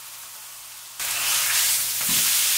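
A steak sizzles in a hot frying pan.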